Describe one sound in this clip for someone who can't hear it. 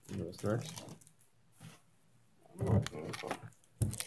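A cardboard box is tapped and rustled by a hand.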